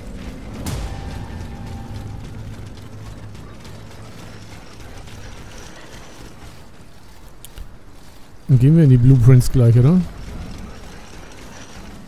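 Footsteps run quickly over cobblestones.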